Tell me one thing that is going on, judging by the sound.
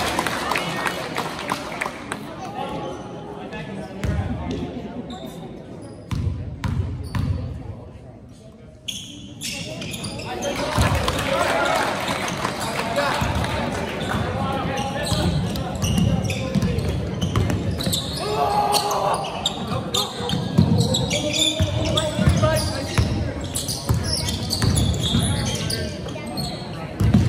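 A crowd of spectators chatters and cheers nearby.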